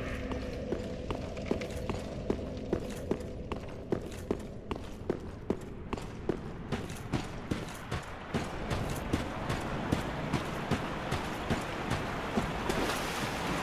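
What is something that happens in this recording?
Armoured footsteps clatter quickly on stone.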